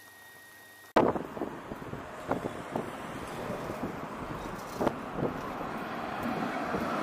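Wind blows hard outdoors.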